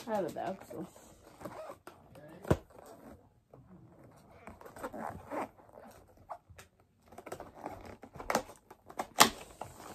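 A cardboard box taps and clicks as it is handled.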